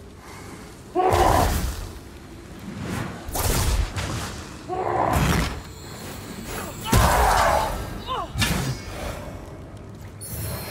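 Heavy weapon blows thud and clash against a shield.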